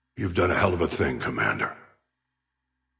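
A man speaks calmly and deeply, close by.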